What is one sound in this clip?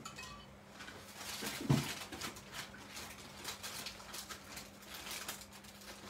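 Stiff paper rustles and crinkles as it is handled.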